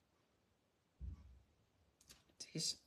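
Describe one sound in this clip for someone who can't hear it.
Paper rustles softly under hands.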